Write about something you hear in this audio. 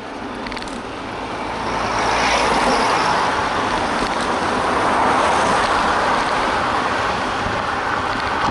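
Wind rushes steadily past, as if riding along a road.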